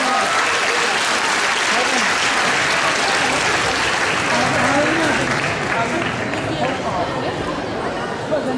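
An audience applauds in a large hall, then the clapping fades.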